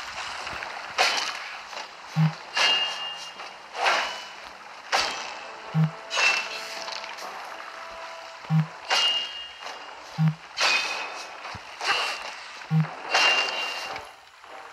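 Weapons clash against shields with sharp metallic blows.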